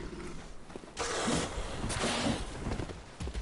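A creature lunges with a loud rushing roar.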